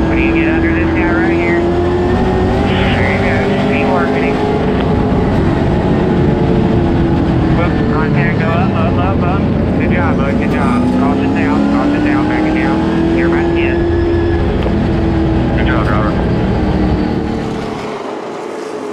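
A race car engine roars loudly from inside the car, rising and falling in pitch.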